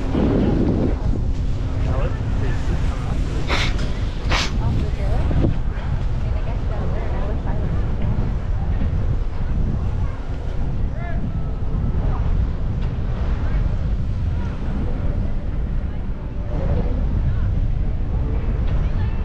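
A chairlift rattles and hums along its cable.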